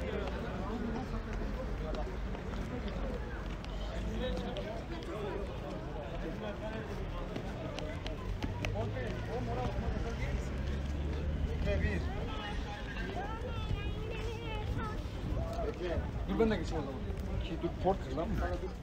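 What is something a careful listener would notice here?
A crowd of people chatter outdoors at a distance.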